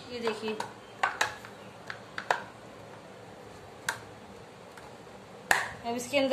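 A plastic toy clicks and taps against a hard floor.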